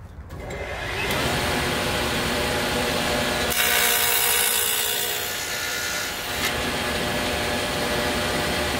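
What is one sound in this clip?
A table saw whirs loudly and steadily.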